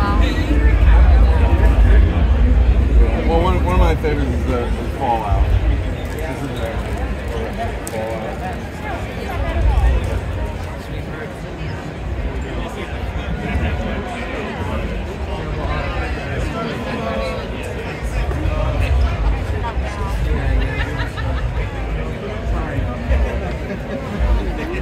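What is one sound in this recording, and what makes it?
A crowd chatters all around in a large echoing hall.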